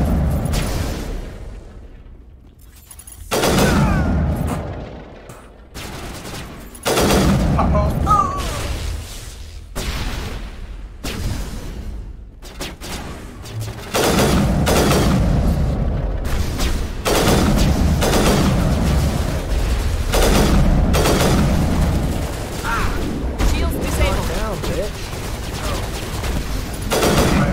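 Electronic energy blasts crackle and fizz.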